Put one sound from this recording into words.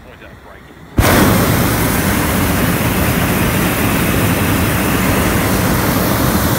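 A balloon burner roars loudly and steadily.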